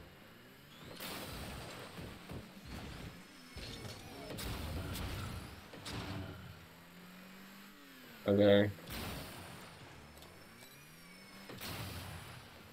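A ball is hit with loud thumps.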